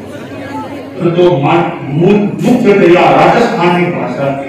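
An elderly man speaks calmly through a microphone in an echoing room.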